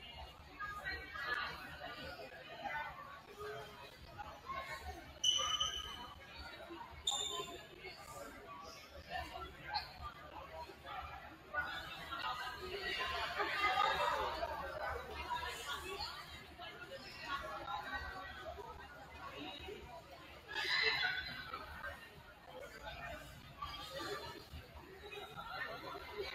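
Young women chatter and call out in a large echoing gym.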